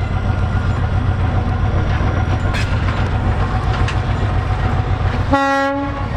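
A diesel locomotive rumbles loudly as it passes close by.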